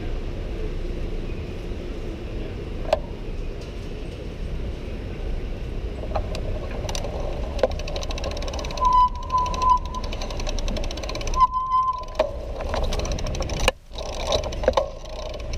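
Wheels rumble and rattle over cobblestones.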